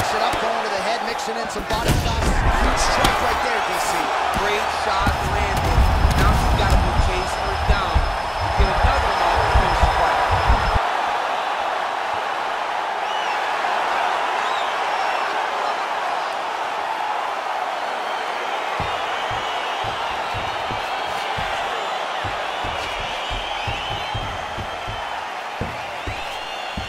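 A crowd cheers and roars loudly throughout.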